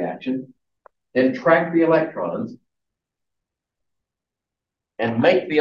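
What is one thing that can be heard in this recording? An older man lectures.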